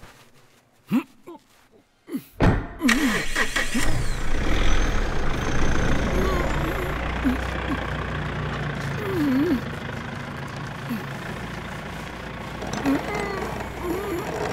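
A gagged man groans and pants.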